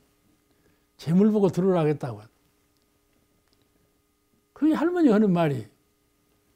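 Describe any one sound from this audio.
An elderly man speaks warmly and expressively into a microphone.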